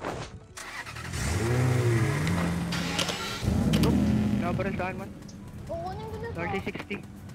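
A sports car engine revs and roars as the car drives off.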